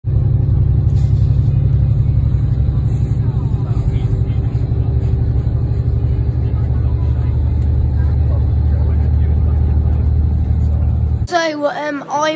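A car engine hums steadily inside a moving vehicle.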